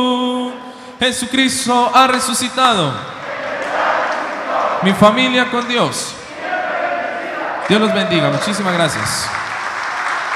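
A crowd of men and women cries out with rising and falling voices.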